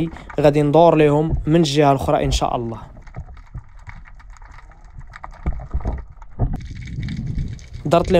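Water swishes and gurgles softly underwater.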